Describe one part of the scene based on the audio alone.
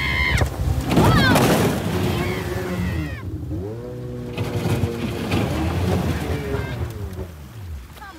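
Shallow water rushes and splashes against a boat hull.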